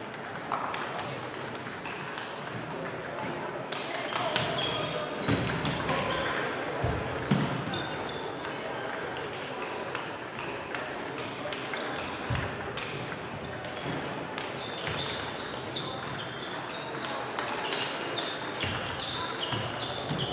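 Table tennis balls click and tap on tables and paddles throughout a large echoing hall.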